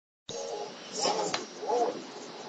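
A game fighter's blow lands with a sharp thud.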